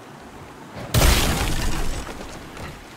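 A heavy blow smashes metal chains with a loud crash.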